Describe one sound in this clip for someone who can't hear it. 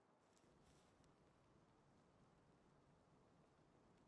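Flames whoosh and roar in a fiery blast.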